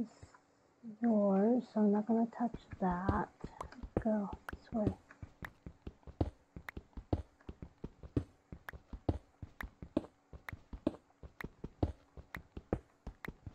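A pickaxe taps rapidly on stone, breaking blocks with short clicking knocks.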